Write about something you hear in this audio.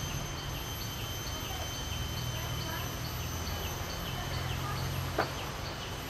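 A young woman talks quietly some distance away.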